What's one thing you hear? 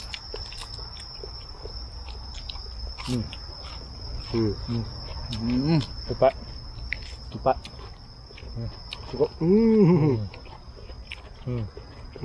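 Men crunch and chew crisp lettuce close by.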